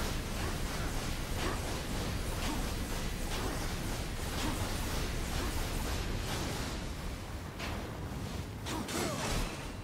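A man talks through a microphone.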